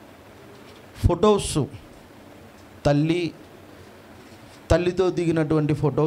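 A middle-aged man speaks with emphasis into a microphone, in short bursts with pauses.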